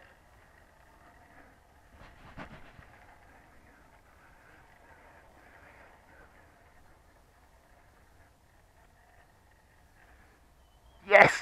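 A small model plane's motor hums faintly overhead.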